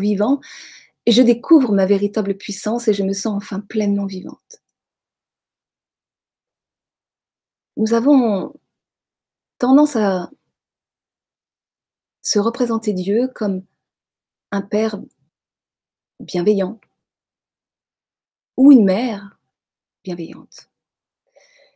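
A middle-aged woman speaks calmly into a microphone close by, with pauses.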